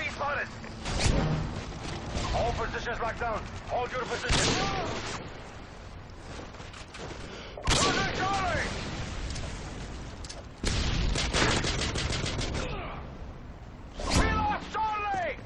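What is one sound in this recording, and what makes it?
Rifle shots crack loudly, one at a time, with a few seconds between them.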